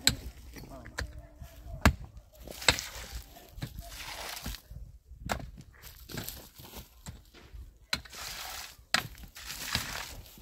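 A pickaxe strikes hard dry earth again and again.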